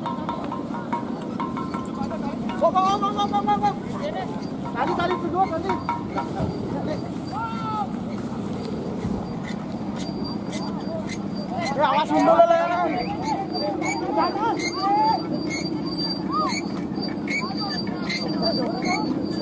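A crowd of young men shouts and cheers outdoors nearby.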